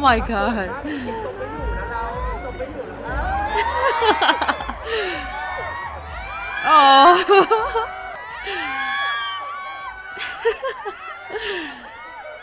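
A man laughs close to a microphone.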